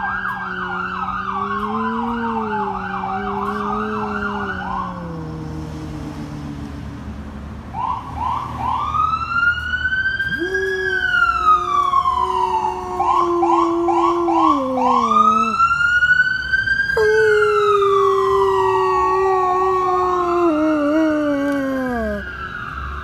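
A large dog howls loudly in long, wavering cries.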